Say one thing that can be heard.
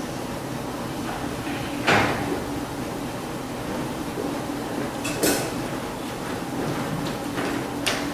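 Actors' footsteps thud on a wooden stage.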